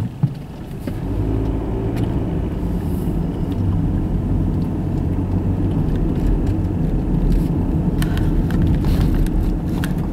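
A car engine rumbles from inside a moving car and grows louder as the car picks up speed.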